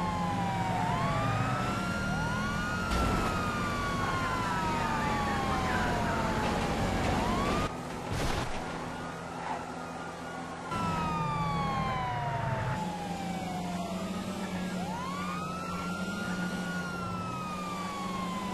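A car engine roars steadily at speed.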